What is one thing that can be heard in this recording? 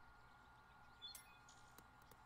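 A golf ball is tapped with a soft knock.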